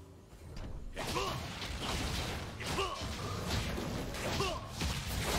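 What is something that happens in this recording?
Game spell effects whoosh and burst during a fight.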